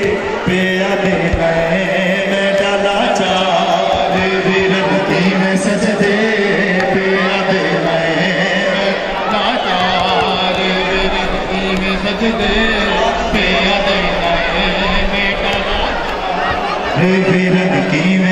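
A crowd murmurs and shuffles on the street.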